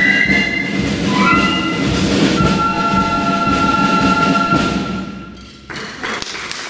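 A flute band plays a tune.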